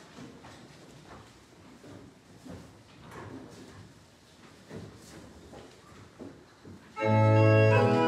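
A woman reads aloud calmly at a distance in an echoing hall.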